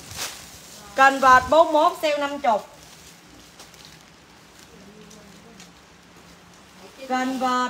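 A young woman speaks animatedly close by.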